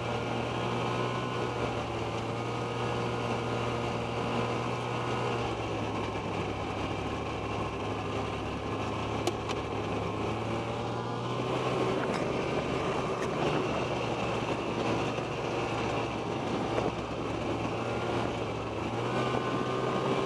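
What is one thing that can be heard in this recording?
A snowmobile engine drones steadily up close, rising and falling with the throttle.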